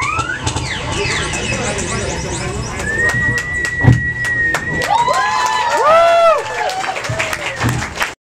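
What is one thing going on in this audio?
A whirling tube sings with whistling tones that rise and fall.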